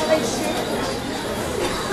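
Coins on a dancer's hip belt jingle softly as the dancer walks.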